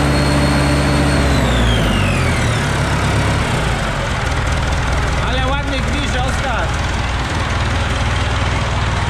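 A diesel engine runs loudly up close.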